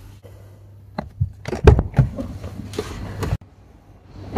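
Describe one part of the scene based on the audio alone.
A hand knocks and rubs against a plastic car door panel.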